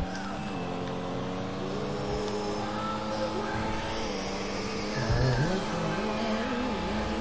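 A car engine hums steadily as a car drives.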